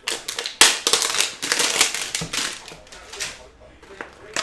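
Plastic wrap crinkles and tears.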